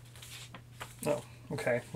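A young man speaks briefly and calmly, close by.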